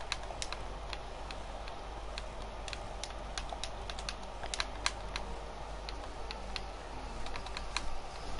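Short, sharp clicks of game menu sounds come quickly one after another.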